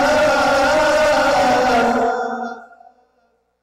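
A man chants loudly into a microphone, his voice ringing through a large echoing hall.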